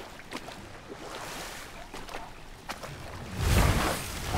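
Water splashes as a wooden boat is paddled along.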